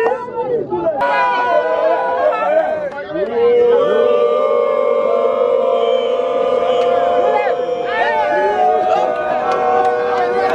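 A crowd of men sings together loudly.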